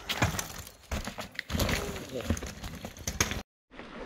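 A bike crashes onto rocky ground.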